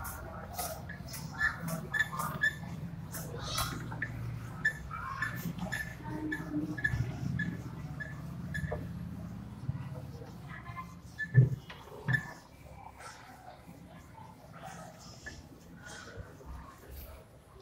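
A man erases a whiteboard with soft rubbing and squeaks.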